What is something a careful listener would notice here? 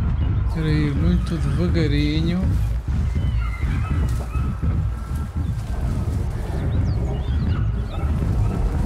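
Tall grass rustles as someone creeps through it.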